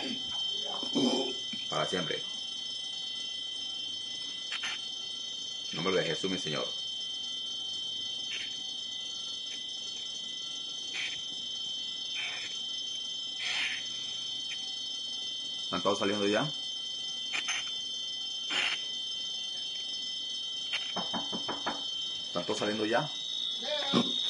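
A young man sobs and speaks haltingly through an online call.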